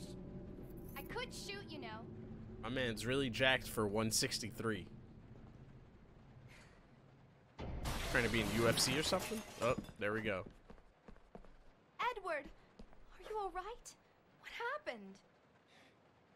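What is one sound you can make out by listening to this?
A young woman speaks calmly in a game's dialogue.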